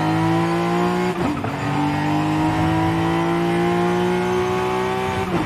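A car engine drones steadily at speed, briefly dipping as it shifts gear.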